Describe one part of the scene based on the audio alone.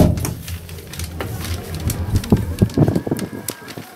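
A heavy truck door swings open.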